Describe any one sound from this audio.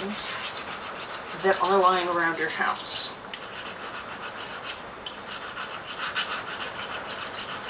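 Hands rub and scrape a small object in quick, repeated strokes.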